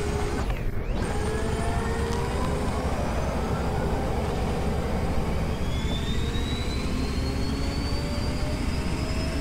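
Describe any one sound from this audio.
A motorbike engine roars and rises steadily in pitch as it speeds up.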